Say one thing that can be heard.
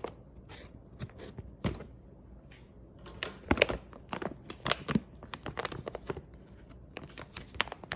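A plastic bag crinkles and rustles up close.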